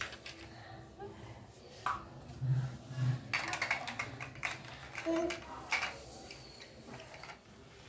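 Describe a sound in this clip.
A plastic toy clicks and clatters.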